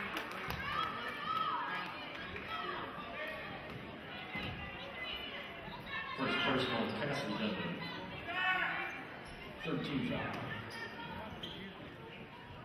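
A crowd shouts and cheers in a large echoing gym.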